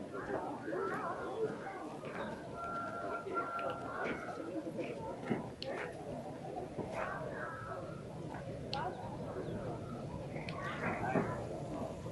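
A steam locomotive puffs steadily in the distance.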